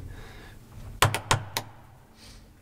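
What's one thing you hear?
A button clicks as a finger presses it.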